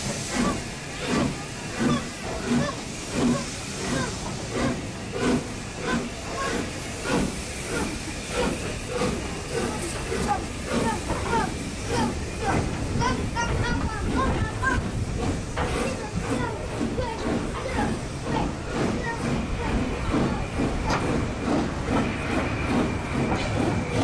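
Railway carriages roll past close by with a rhythmic clatter of wheels over rail joints.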